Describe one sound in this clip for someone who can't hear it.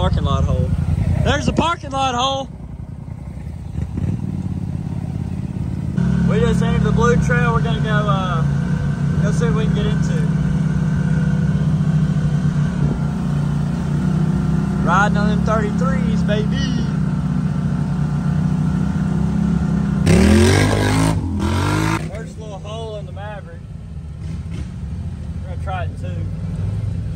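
An engine rumbles steadily close by, growing louder as the vehicle drives.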